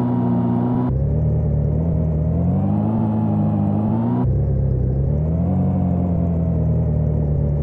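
A car engine hums steadily, its pitch rising and falling with the gear shifts.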